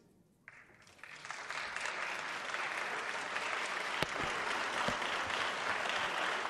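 A large crowd applauds steadily in a large echoing hall.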